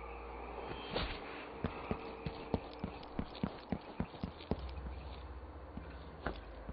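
Footsteps tap on hard stone.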